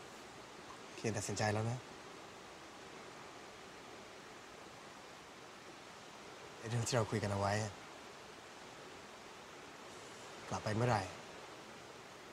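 A young man speaks softly, close by, in short phrases.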